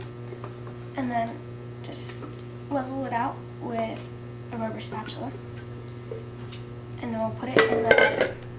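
A young girl speaks.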